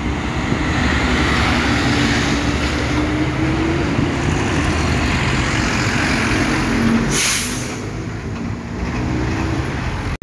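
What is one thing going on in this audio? A bus engine rumbles and idles close by.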